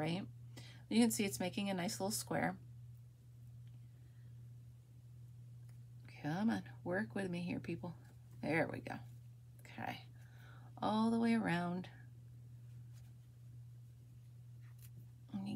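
A crochet hook softly works yarn with faint rustling.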